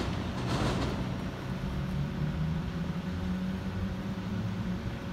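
A train rumbles along the tracks in the distance, approaching slowly.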